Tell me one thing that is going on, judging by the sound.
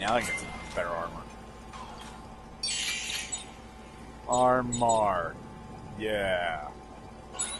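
Short electronic menu chimes sound as options are selected.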